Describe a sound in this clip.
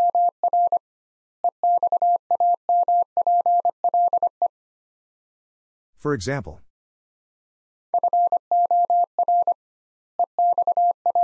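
A telegraph key taps out Morse code as quick, steady beeps.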